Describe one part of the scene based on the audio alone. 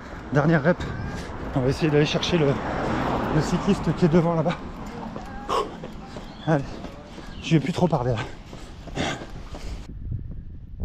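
A man talks with animation close to a microphone, slightly out of breath.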